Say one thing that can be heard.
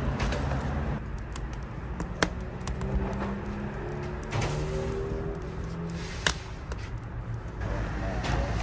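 A wood fire crackles and roars.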